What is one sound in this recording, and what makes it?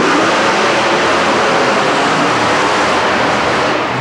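A monster truck crushes cars with a crunch of metal.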